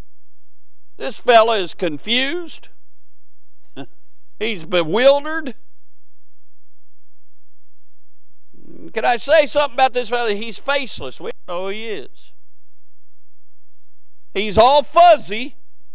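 A middle-aged man preaches with animation through a microphone, pausing between phrases.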